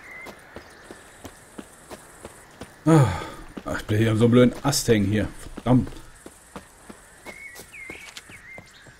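Footsteps swish quickly through dry grass.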